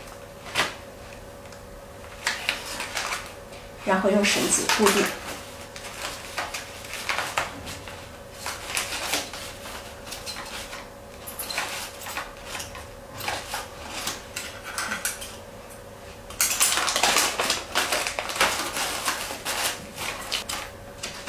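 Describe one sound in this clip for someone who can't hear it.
Kraft paper wrapping crinkles and rustles.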